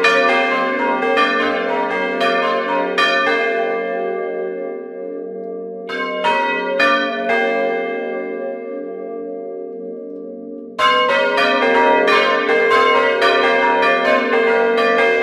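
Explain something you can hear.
Bronze church bells ring close up, struck by hand with the clapper in quick bursts.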